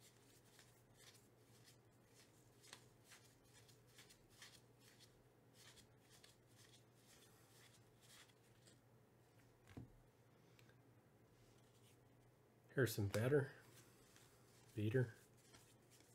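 Trading cards rustle and flick softly as hands shuffle through a stack.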